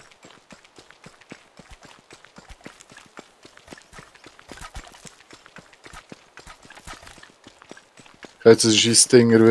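Soft footsteps patter on dirt.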